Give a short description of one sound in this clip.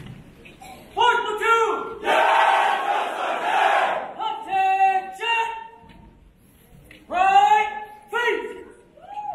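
A man shouts drawn-out marching commands from a stage, echoing through the hall.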